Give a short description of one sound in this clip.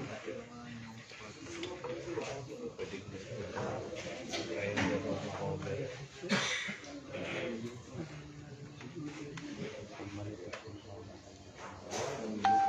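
Several men chat in the background.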